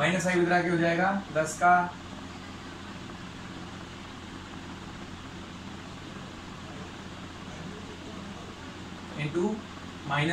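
A man speaks calmly and clearly up close, in short phrases with pauses.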